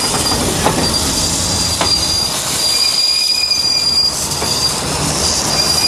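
Metal wheels squeal against the rails.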